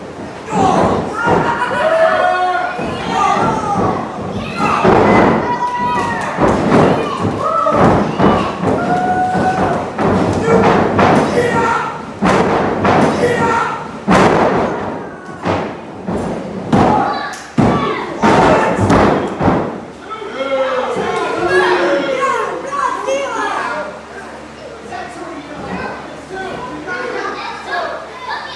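A crowd chatters and calls out in a room that echoes.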